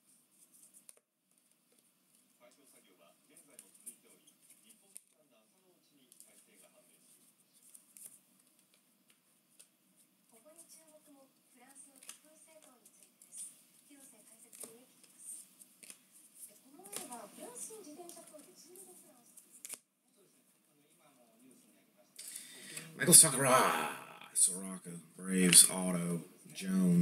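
Trading cards slide and flick against each other as they are shuffled through by hand.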